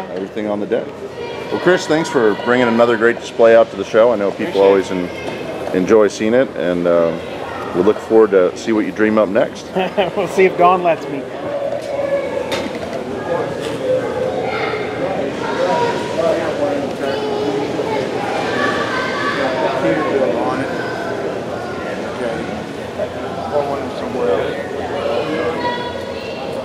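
A crowd of people chatters in the background of a large indoor hall.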